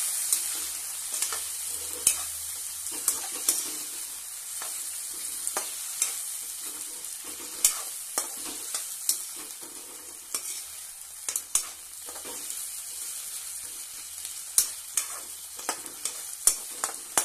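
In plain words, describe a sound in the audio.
A metal spatula scrapes and clinks against a metal pan.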